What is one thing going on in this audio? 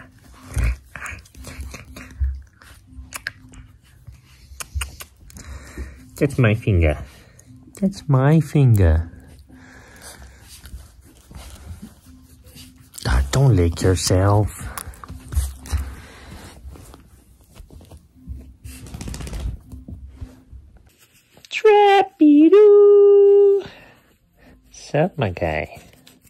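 Fabric rustles as a dog is petted.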